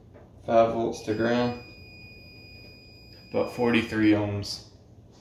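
A multimeter beeps with a steady high tone.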